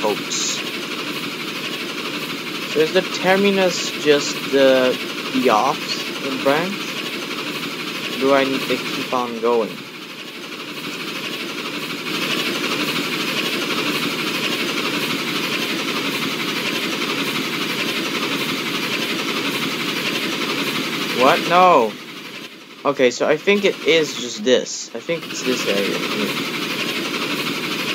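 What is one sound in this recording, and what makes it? A steam locomotive chugs steadily along the rails.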